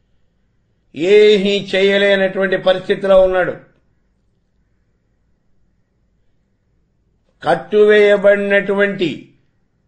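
An elderly man sings in a steady, drawn-out chant close to a microphone.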